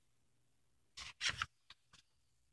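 A paper page turns over.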